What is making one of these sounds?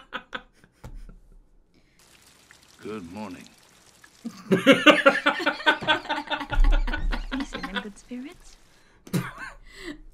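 A young woman laughs loudly and shrieks close by.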